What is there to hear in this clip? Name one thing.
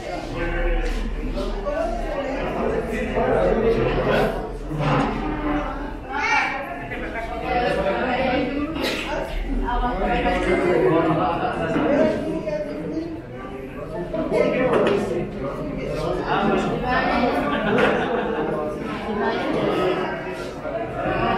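A crowd of men and women chatters throughout in a large echoing hall.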